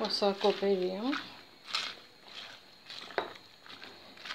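A wooden spoon stirs and scrapes cabbage in a pan.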